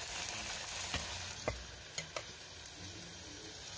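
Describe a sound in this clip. A metal spoon clinks against a metal pot.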